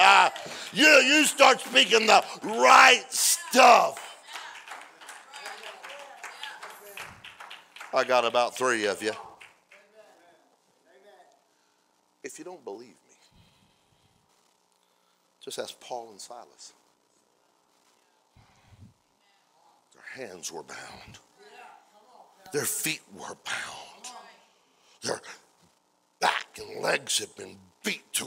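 A middle-aged man speaks with feeling into a microphone, pausing often.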